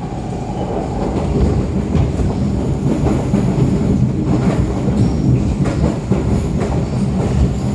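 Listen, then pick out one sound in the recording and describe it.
A train carriage rattles and clatters as it moves.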